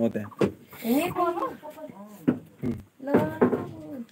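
Wooden boards knock and clatter.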